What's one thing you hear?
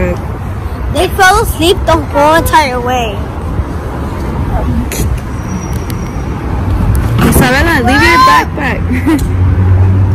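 A young girl talks and squeals close by.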